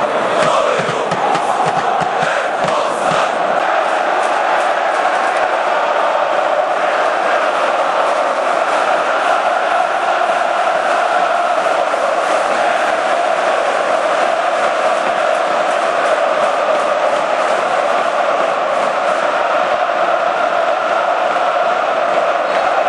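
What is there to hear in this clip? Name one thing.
Another stadium crowd sings a steady chant.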